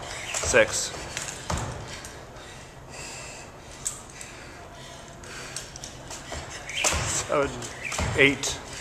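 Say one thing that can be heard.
A woman's feet land with thumps on a wooden floor in an echoing hall.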